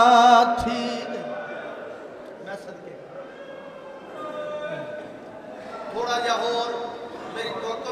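A man sings a mournful chant loudly into a microphone, heard in a reverberant hall.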